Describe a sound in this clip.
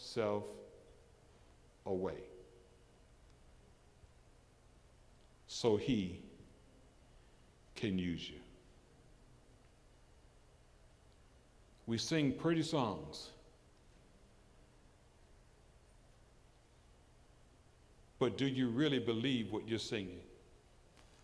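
An elderly man preaches with feeling through a microphone, in short bursts with pauses.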